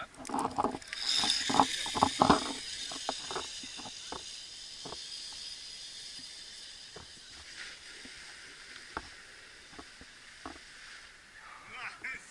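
A pulley whirs along a zip line cable and slowly fades.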